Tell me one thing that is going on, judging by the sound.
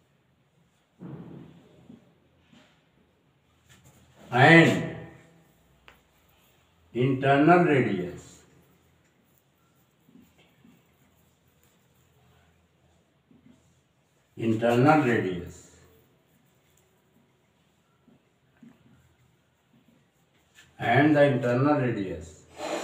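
An older man speaks calmly in short phrases, close by.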